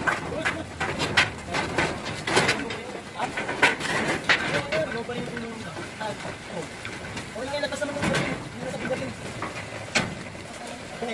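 Metal knocks and clatters sharply.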